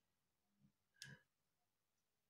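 Metal pliers click.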